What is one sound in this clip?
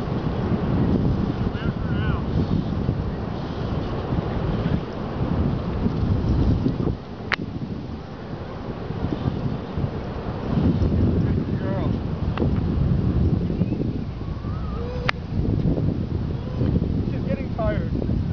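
Waves break on a shore in the distance.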